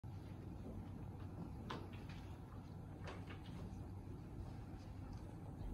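A piano plays softly in a room.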